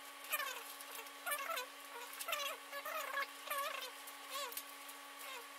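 Cables rustle and scrape against a metal case.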